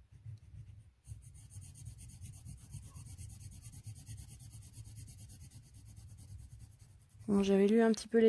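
A crayon scratches softly on paper.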